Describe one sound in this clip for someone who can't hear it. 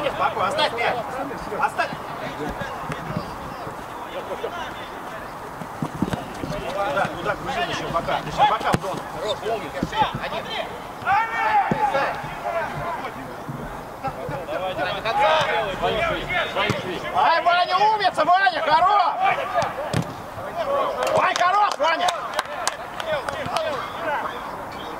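Men shout across an outdoor pitch.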